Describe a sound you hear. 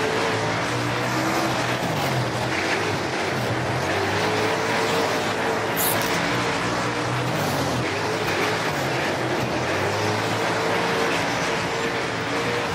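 A race car engine roars, revving up and down.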